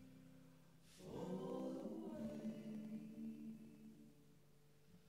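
A young man sings softly into a microphone.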